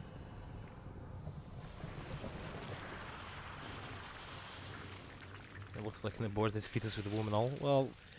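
A large creature rises out of a pool of thick liquid with a wet, rushing surge.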